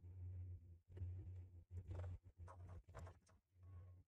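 A crowbar smashes through a wooden crate.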